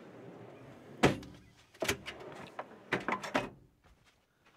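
A metal drawer slides shut with a clunk.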